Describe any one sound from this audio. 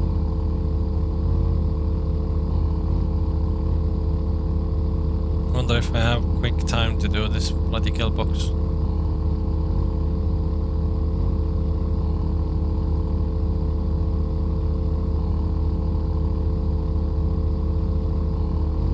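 An outboard motor drones steadily as a small boat moves across the water.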